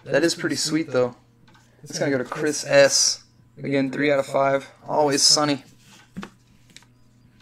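Trading cards in plastic sleeves rustle and tap on a mat.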